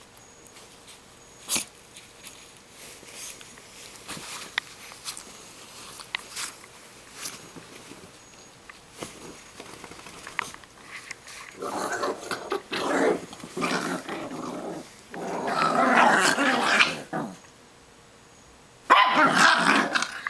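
Bedding rustles and thumps as small dogs tumble about.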